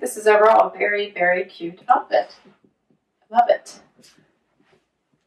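A woman speaks to the listener with animation, close by.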